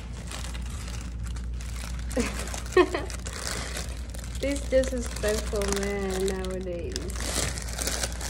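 A plastic mesh bag of potatoes rustles and crinkles.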